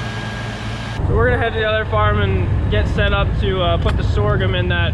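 A young man talks close by, casually.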